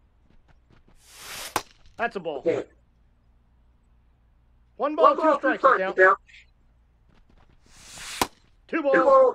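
A pitched baseball whooshes in and smacks into a catcher's mitt.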